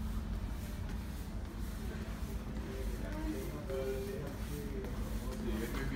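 Footsteps tap on a hard floor as a man walks past.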